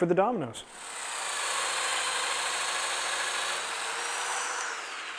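A power tool's motor runs with a steady high whine.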